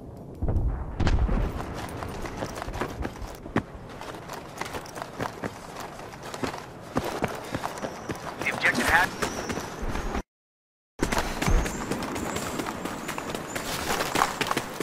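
Gunshots crack repeatedly in the distance.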